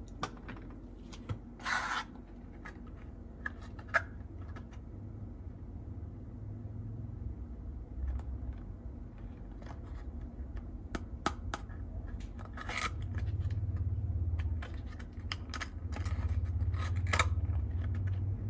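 Fingers handle and tap a small cardboard box.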